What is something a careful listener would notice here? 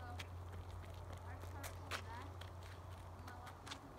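A ball thumps as a child kicks it on pavement.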